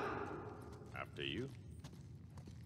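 A man speaks briefly and casually, close by.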